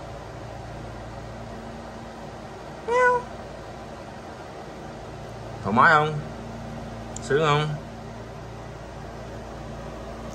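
Small fans hum steadily.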